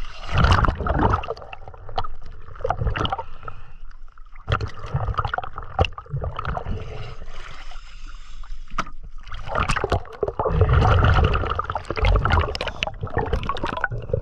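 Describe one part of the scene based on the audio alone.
Bubbles gurgle and rumble underwater.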